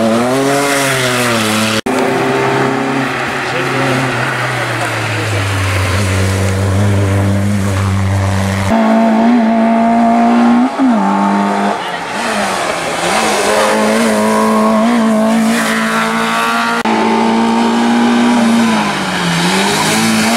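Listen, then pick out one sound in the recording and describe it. Engines drop in pitch as drivers shift gears between bursts of acceleration.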